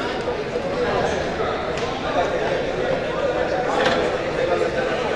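Spectators chatter steadily in an echoing indoor hall.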